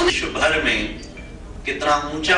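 A man speaks at a podium through a microphone in a hall.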